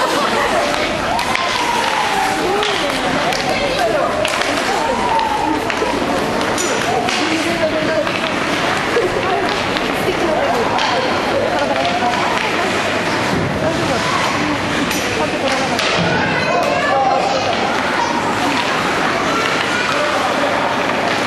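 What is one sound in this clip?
Skates scrape and hiss across the ice.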